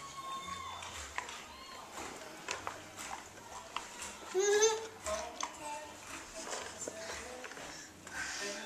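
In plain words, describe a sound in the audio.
Toy plastic dishes clink and clatter.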